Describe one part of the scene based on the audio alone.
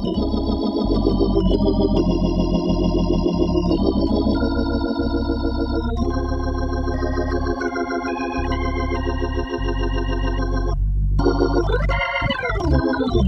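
A jazz organ plays held chords that shift and slide in pitch.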